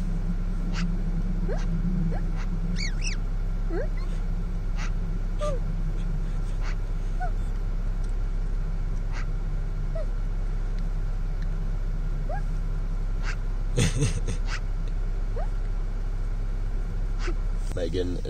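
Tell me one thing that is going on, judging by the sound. A bird chirps softly nearby.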